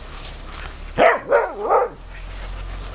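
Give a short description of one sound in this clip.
A large dog barks several times close by.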